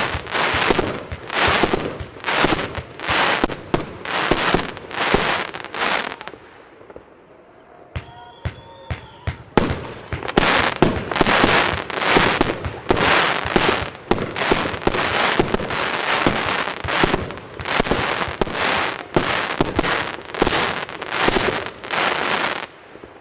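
A fireworks cake fires shots in rapid succession.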